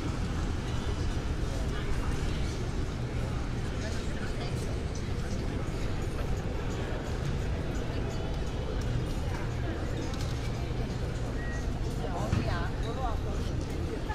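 A crowd murmurs with distant chatter outdoors.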